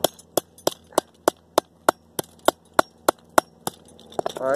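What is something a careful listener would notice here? A hammer taps metal in quick, even blows.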